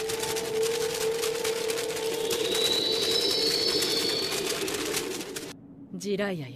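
Sheets of paper flutter and rustle loudly.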